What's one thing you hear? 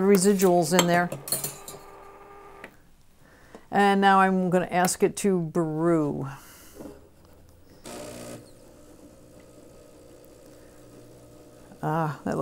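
An elderly woman speaks calmly and clearly, close by.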